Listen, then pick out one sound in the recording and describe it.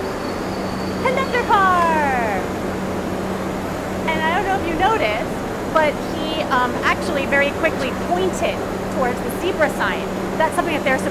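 A young woman talks with animation, close by.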